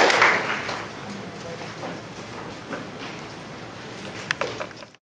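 A large audience murmurs softly in a hall.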